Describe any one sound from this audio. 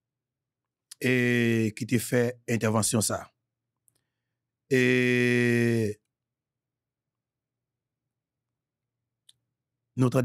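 A man speaks into a microphone over an online call, in short bursts with long pauses.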